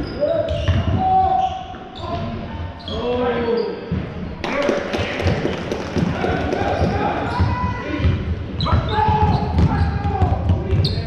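A man shouts instructions to players from the sideline.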